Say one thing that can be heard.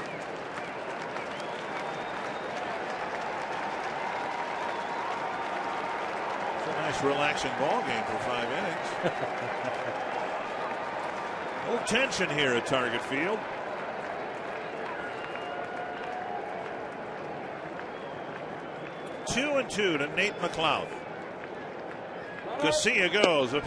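A large stadium crowd murmurs outdoors.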